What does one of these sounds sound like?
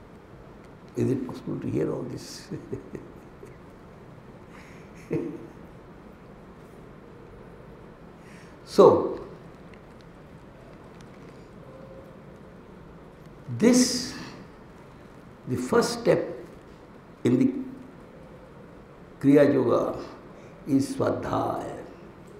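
An elderly man speaks slowly into a microphone, with long pauses, in a room with some echo.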